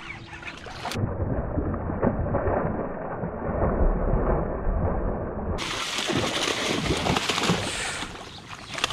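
A large fish thrashes and splashes at the surface of the water.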